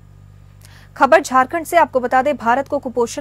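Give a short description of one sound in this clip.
A woman speaks clearly into a microphone, reading out the news.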